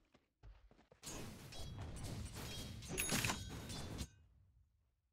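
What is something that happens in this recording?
Game combat sound effects clash and crackle.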